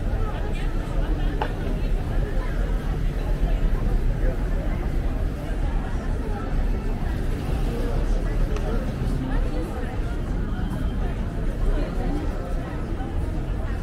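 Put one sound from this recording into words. A crowd of people chatters and murmurs all around outdoors.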